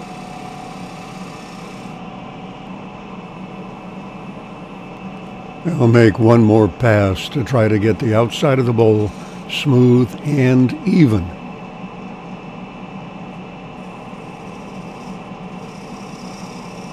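A wood lathe motor hums.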